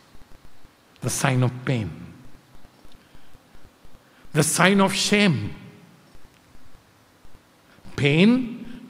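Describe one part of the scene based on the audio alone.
An elderly man speaks expressively into a microphone, in short bursts with pauses.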